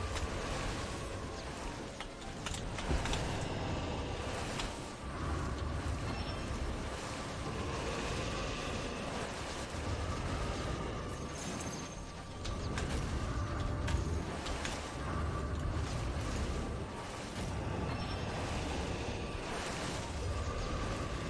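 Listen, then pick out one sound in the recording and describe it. Wind rushes steadily past a gliding figure.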